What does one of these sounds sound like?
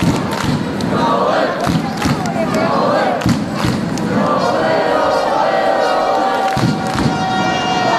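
Spectators clap their hands.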